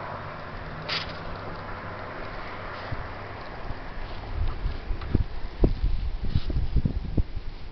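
Paper sheets rustle and crinkle as they are handled close by.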